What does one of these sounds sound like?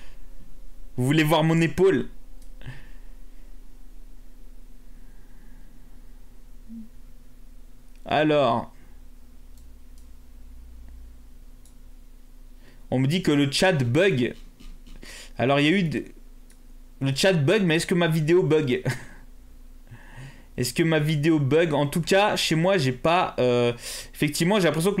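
A young man speaks with animation into a close microphone, with pauses.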